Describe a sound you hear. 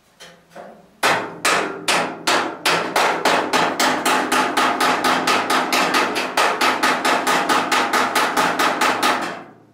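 An air hammer pounds metal in fast, steady blows.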